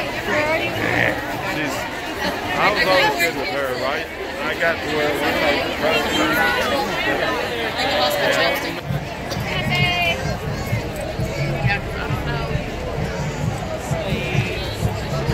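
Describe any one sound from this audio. A large outdoor crowd of men and women chatters and calls out all around.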